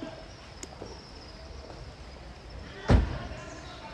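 Monkeys chatter and call from a cliff.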